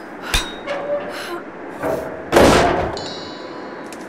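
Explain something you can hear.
A wooden crate lid creaks and bangs open.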